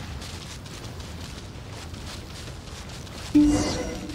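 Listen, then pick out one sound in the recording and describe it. Footsteps run over rock and grass.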